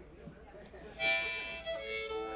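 A harmonica plays loud, bright notes close by.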